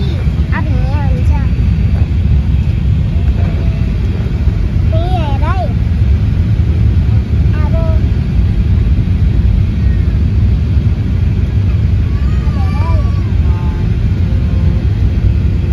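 An aircraft cabin rumbles with a steady, deep engine roar.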